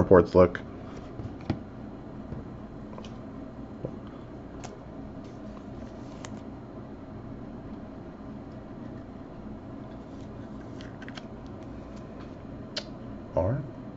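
Foil card packs crinkle and rustle as they are handled and stacked.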